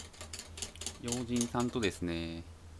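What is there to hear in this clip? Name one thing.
A young man speaks close to a microphone with animation.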